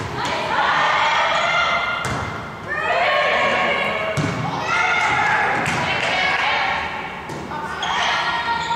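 Girls shout and cheer loudly in an echoing gym.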